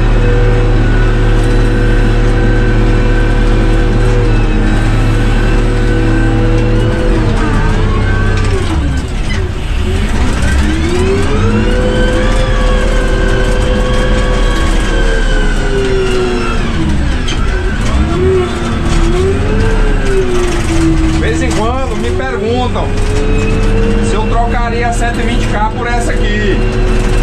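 A diesel engine rumbles up close, its pitch rising and falling as it revs.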